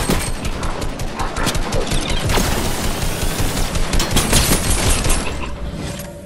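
Rapid bursts of gunfire crack and rattle.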